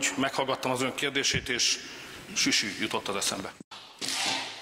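A middle-aged man speaks firmly into a microphone in an echoing hall.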